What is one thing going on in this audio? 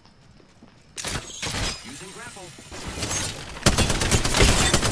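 A gun fires several loud shots in quick succession.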